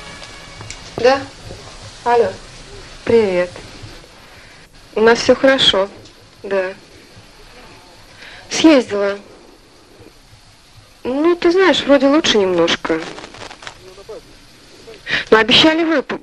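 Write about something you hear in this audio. A young woman speaks calmly into a telephone, close by.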